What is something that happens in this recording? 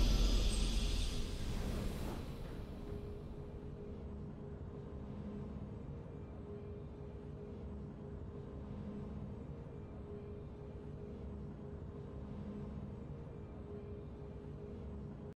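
A triumphant game fanfare rings out and fades into a low, steady hum.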